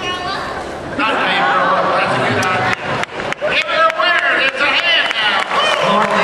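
A man talks with animation over a loudspeaker in a large echoing arena.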